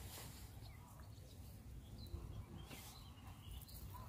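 Dry grass rustles as a hand brushes through it.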